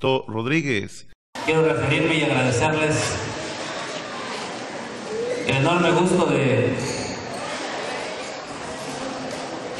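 A man speaks loudly into a microphone over a loudspeaker, with a slight echo.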